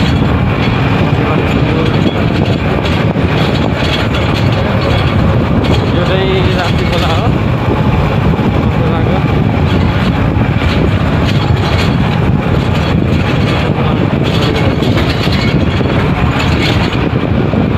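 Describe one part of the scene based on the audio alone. A bus engine rumbles steadily up close.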